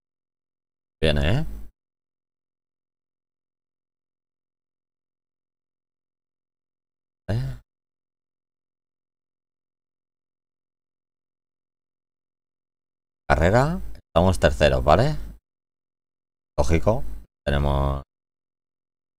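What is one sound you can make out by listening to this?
A young man speaks in short bursts into a close microphone, with pauses between.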